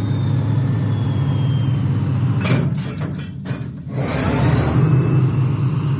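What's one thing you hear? A diesel engine rumbles as it rolls slowly along a track.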